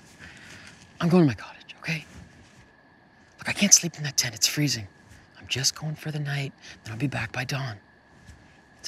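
A young man speaks quietly and seriously up close.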